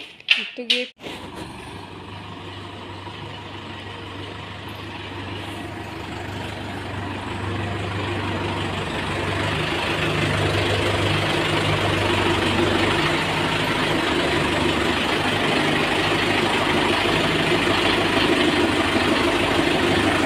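A tractor engine rumbles steadily, growing louder as the tractor drives closer.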